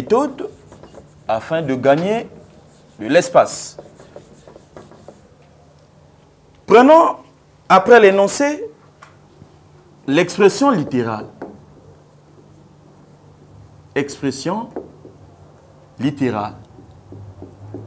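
A man speaks calmly in bursts, with pauses.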